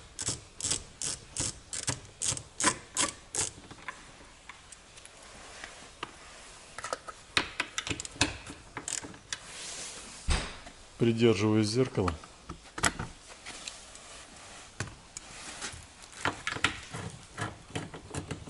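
A screwdriver clicks and rattles against metal parts close by.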